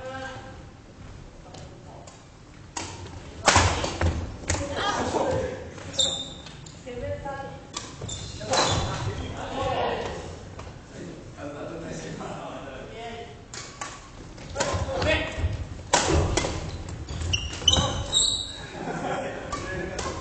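Rackets hit a shuttlecock in a rally.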